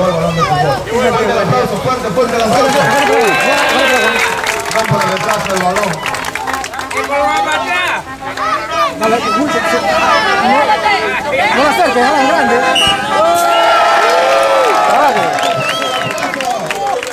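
A crowd of children chatters and shouts outdoors.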